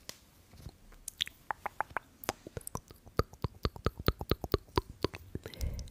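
Quick sharp taps and clicks sound close to a microphone.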